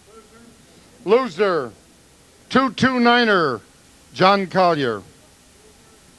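An elderly man speaks slowly into a microphone, with pauses, heard through a loudspeaker.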